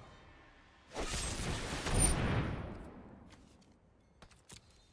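A soft whoosh and chime sound as a card is played.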